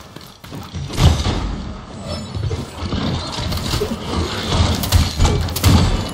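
A crossbow fires bolts with sharp twangs.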